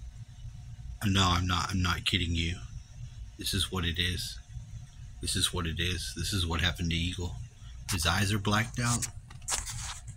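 A cartoon bird voice talks with animation.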